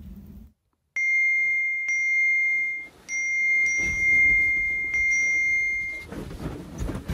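Alert tones beep repeatedly and loudly.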